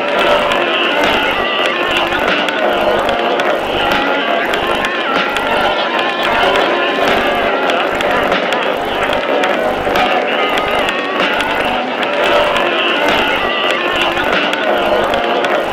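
Cartoon creatures sing a bouncy song with a steady beat.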